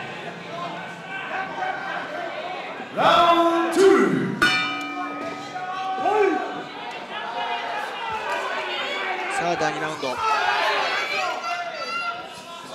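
A crowd shouts and cheers in a large echoing hall.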